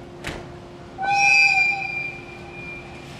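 A locomotive horn sounds loudly once.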